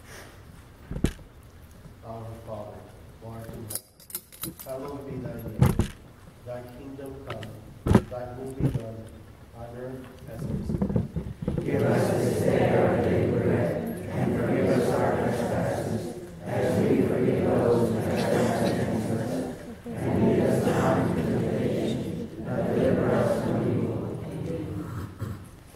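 A man reads aloud through a microphone in an echoing room.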